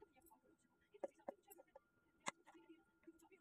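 Banana pieces thud into a plastic jar.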